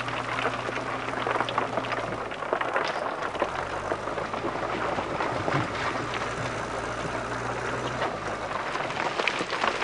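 A diesel engine rumbles steadily as a backhoe loader moves.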